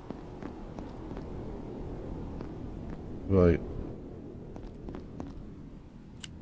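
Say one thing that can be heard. Footsteps crunch on loose rock.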